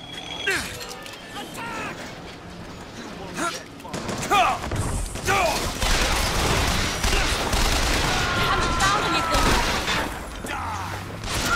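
A machine gun fires in bursts.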